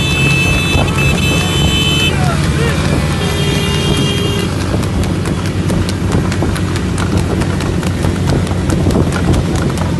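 A horse's hooves clatter on the road at a trot.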